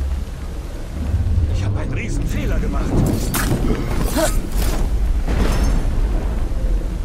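Heavy blows thud in a short scuffle.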